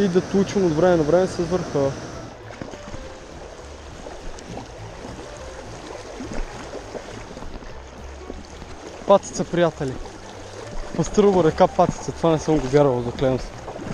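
A man talks close by with animation.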